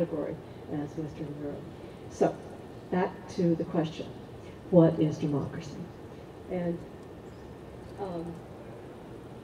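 An older woman speaks calmly into a microphone outdoors.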